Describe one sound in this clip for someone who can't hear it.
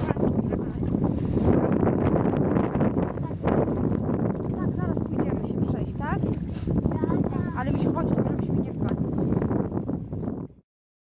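Water splashes and sloshes as several people wade through it.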